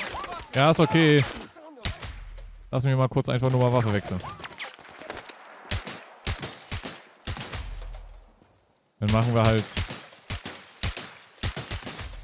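A rifle fires single shots in quick bursts.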